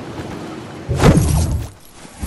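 A pickaxe strikes hard with a loud crash.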